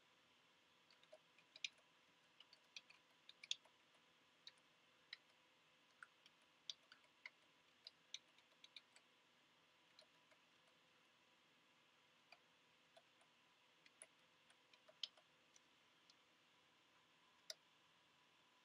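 Keys click one at a time as someone types on a keyboard.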